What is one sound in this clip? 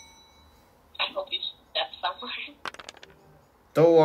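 Dice clatter briefly as they roll.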